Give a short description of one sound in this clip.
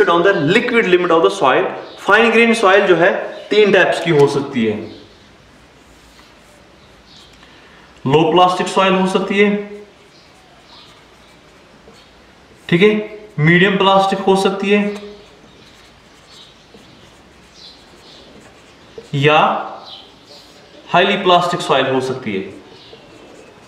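A young man speaks calmly and clearly, close to the microphone.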